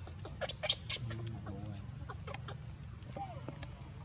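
A baby monkey squeaks softly nearby.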